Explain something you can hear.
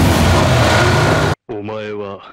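A sedan engine roars as the car drives over rough ground.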